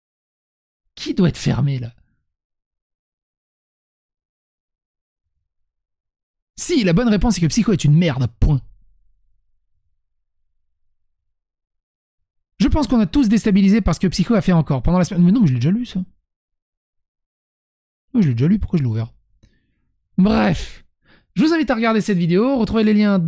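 A young man talks into a close microphone in bursts, with pauses between.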